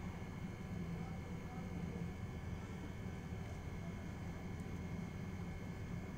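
Hands press and crumble loose soil in a pot.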